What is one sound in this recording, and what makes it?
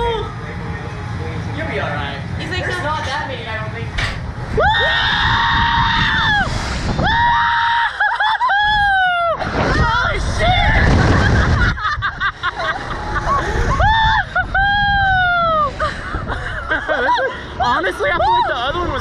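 A man shouts and laughs loudly.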